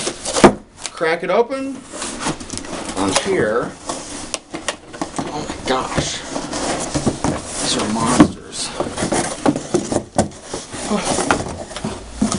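Cardboard rustles and scrapes as a box is handled.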